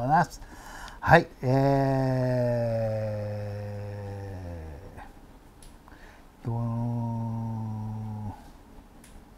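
An older man speaks close to a microphone, stretching out long drawn-out sounds.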